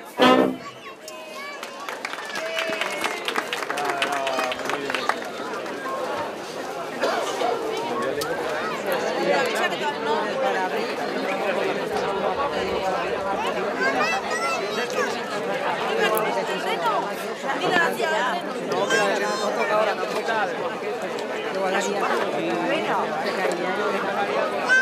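A crowd of men, women and children chatters nearby.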